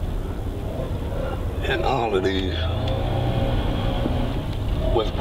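A car engine hums steadily from inside a slowly moving car.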